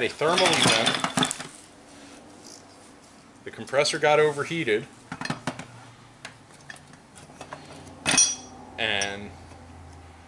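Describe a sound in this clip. Metal engine parts clink and clatter as they are handled.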